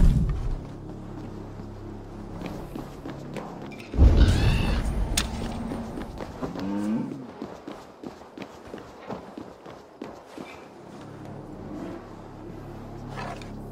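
Soft footsteps pad across a stone floor.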